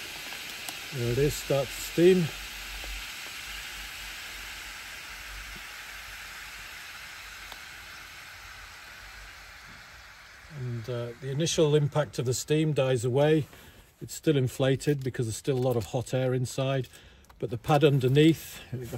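A man speaks calmly close by.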